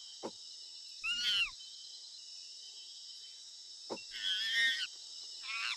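An ape hoots and calls loudly in short bursts.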